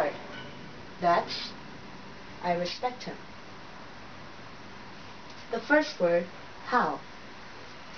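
A woman speaks slowly and clearly, close by, as if teaching.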